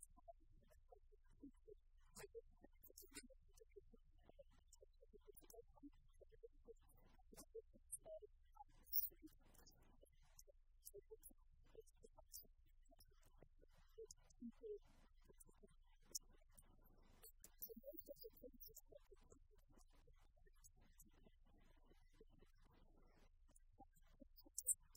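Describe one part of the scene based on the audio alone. A woman lectures calmly through a microphone in a large echoing hall.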